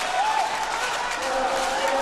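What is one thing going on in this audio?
A young man shouts excitedly.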